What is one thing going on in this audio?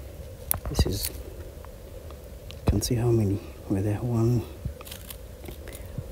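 Dry leaves rustle as a hand picks an apple up from the ground.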